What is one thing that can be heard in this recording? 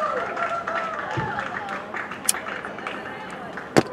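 A match strikes and flares up close.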